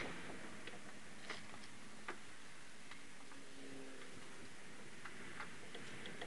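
Metal parts clink softly as a brake disc is handled.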